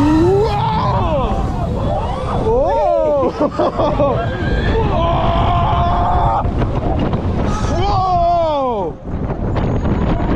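Wind roars past at speed.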